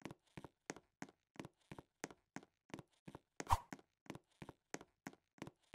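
Quick footsteps patter steadily on a hard floor.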